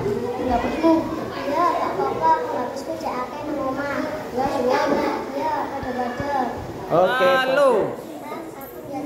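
A second young girl answers calmly nearby.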